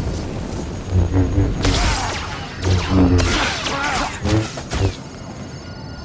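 A lightsaber hums and clashes.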